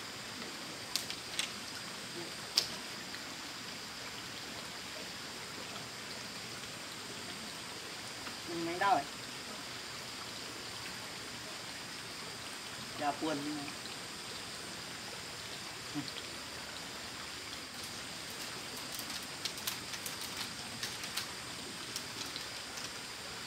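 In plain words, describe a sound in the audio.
Bamboo poles knock and tap faintly outdoors.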